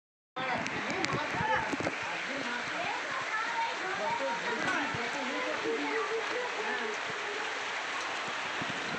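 Rain patters steadily on a pool of water outdoors.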